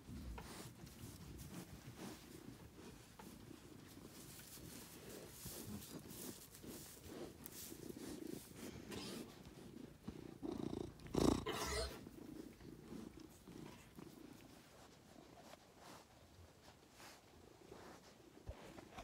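Straw rustles as animals move about close by.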